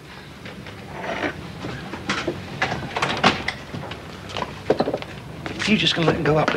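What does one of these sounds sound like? A crowd of men talks and murmurs in a busy room.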